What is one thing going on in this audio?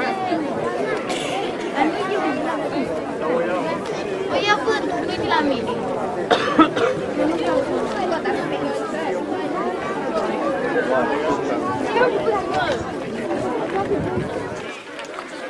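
A crowd of children and adults chatters outdoors.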